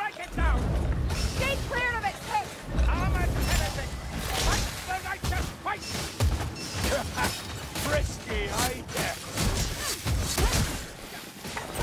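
Blades slash and thud into creatures in a fierce melee.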